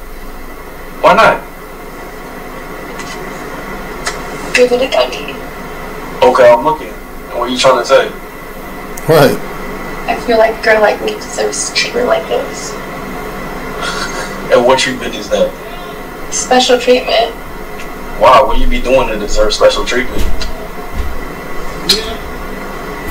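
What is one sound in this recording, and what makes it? A woman talks, heard through a loudspeaker.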